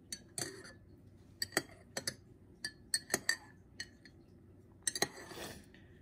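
Liquid swirls and sloshes softly in a mug.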